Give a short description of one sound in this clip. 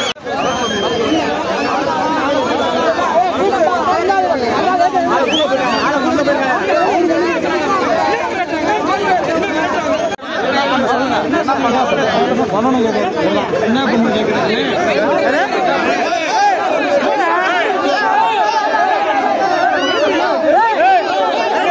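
A crowd of men shouts and argues loudly close by.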